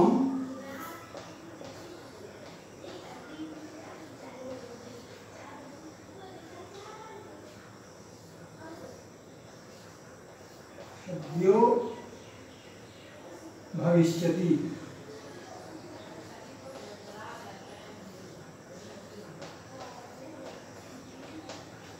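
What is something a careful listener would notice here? A marker squeaks on a whiteboard.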